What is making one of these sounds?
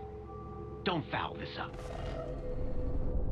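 A robotic character speaks in a deep, stern voice, close up.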